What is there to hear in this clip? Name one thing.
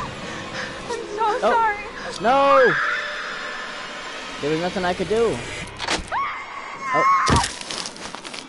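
A young woman screams in terror.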